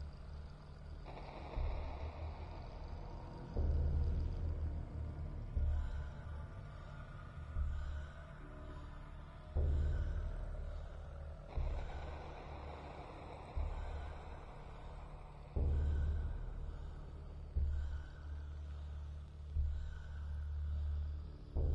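Deep, booming music pulses steadily with a heavy beat about every two seconds.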